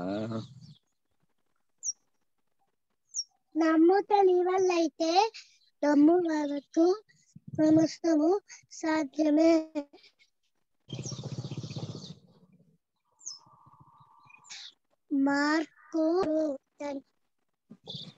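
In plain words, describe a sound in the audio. A young boy speaks with animation over an online call.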